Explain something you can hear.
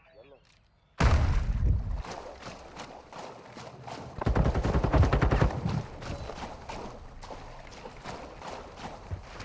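Water splashes as someone wades through it.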